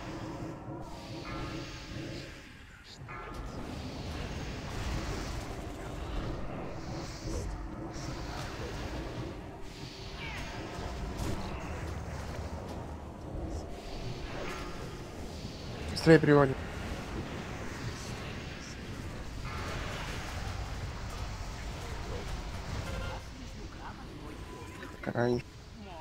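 Battle sounds of spells and clashing weapons ring out continuously.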